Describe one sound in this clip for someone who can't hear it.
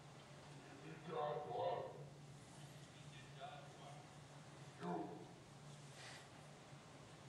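A man speaks into a microphone with pauses, heard through loudspeakers in a large echoing hall.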